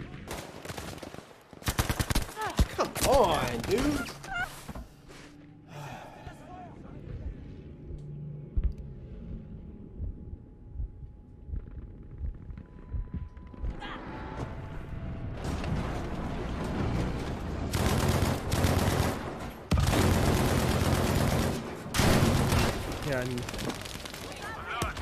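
Gunfire and explosions crackle and boom loudly from a game.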